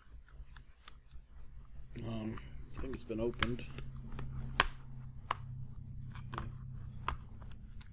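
A plastic pry tool clicks and snaps along the edge of a tablet case.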